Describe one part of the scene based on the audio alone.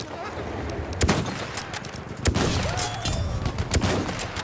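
A rifle fires loud, sharp shots close by.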